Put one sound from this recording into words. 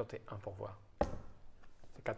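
A card taps down on a table.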